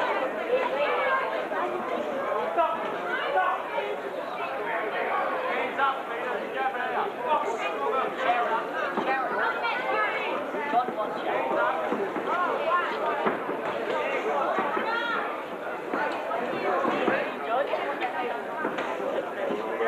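A crowd of spectators shouts and cheers in a large hall.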